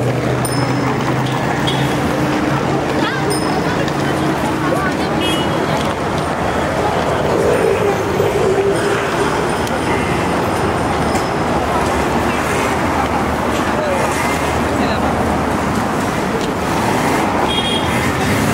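Traffic hums steadily in the distance.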